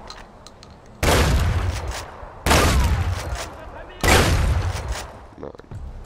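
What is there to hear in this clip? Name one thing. A gun fires loud single shots that echo off walls.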